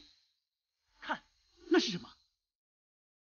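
A young woman speaks softly in surprise.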